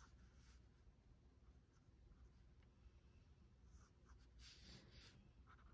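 A pen scratches quickly across paper in short strokes.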